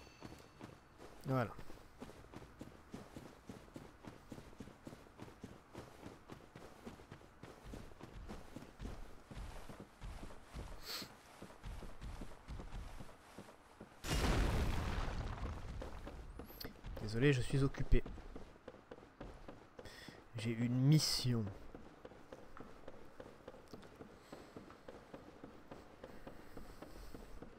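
Footsteps in armour thud and clank steadily.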